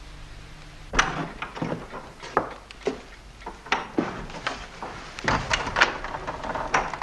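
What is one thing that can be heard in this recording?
A door latch clicks and rattles.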